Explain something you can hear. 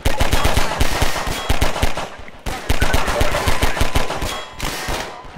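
A pistol fires rapid shots.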